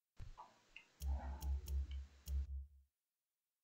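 Short electronic menu clicks sound as a selection changes.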